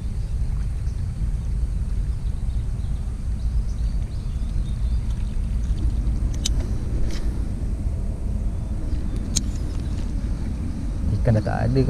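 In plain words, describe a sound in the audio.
Wind rumbles steadily against the microphone outdoors.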